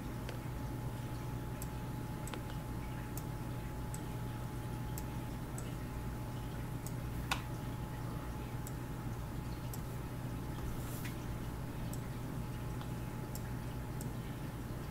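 Soft game chimes and clicks sound as letters are linked.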